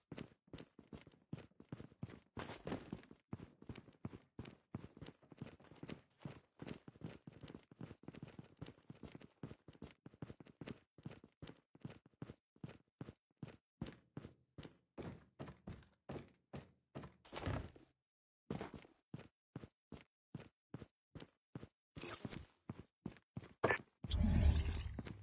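Footsteps thud quickly and evenly over hard ground.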